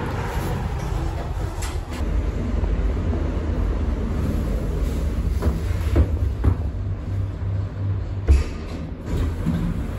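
A lift motor hums low and steadily.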